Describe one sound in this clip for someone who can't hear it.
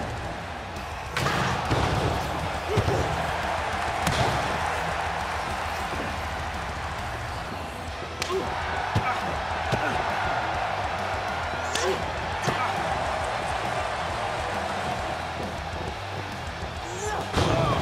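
A large crowd cheers steadily throughout.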